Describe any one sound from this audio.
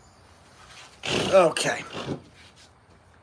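A man speaks loudly and with animation close to the microphone.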